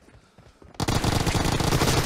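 An automatic rifle fires in a video game.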